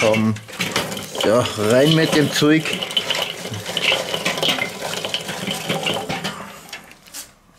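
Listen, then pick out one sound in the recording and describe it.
Hot charcoal tumbles and crackles as it is poured out.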